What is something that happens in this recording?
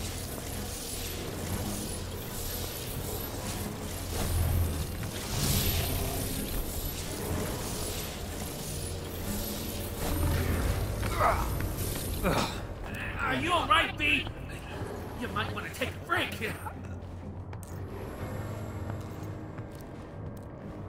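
Footsteps crunch on rough rocky ground.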